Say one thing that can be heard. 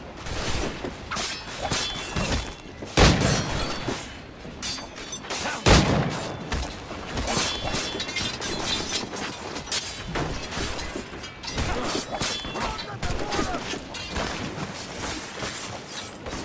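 Blades clash and strike in close combat.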